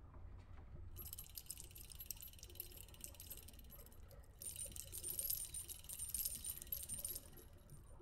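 A wooden windmill mechanism ticks and whirs as its sails turn.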